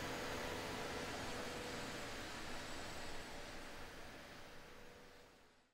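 A jet airliner's engines roar steadily, then fade away.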